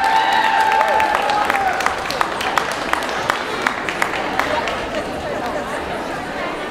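A crowd cheers and whistles in a large echoing hall.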